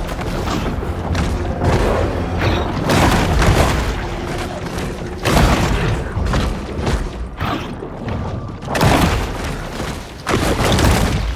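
Water splashes as a creature swims through it.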